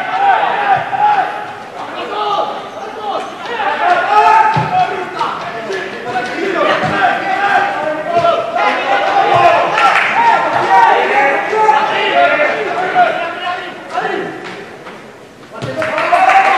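A football thuds as players kick it across the pitch.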